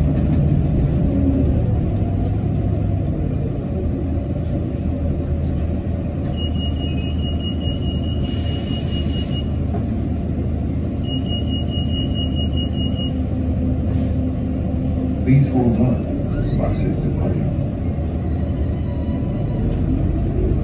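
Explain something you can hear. A bus engine hums and rumbles steadily as the bus drives along.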